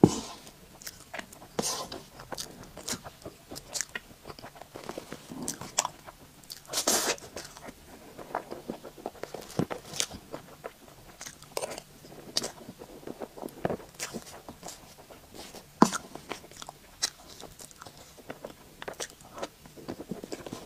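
A young woman eats soft cake close to a microphone, with wet chewing and smacking sounds.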